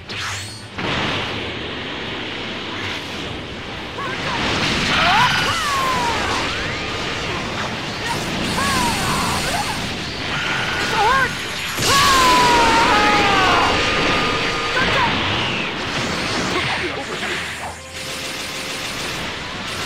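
Energy blasts whoosh and roar.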